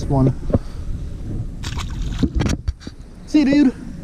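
A fish splashes into water.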